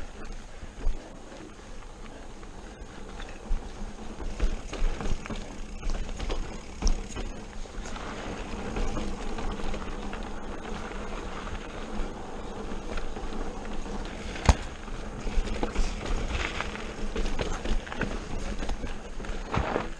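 Bicycle tyres roll and crunch over rocky dirt.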